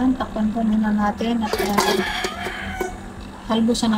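A metal lid clanks onto a metal pot.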